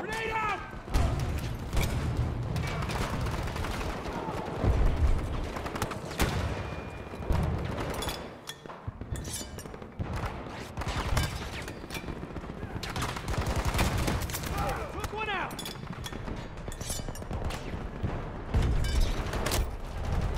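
Heavy explosions boom and rumble.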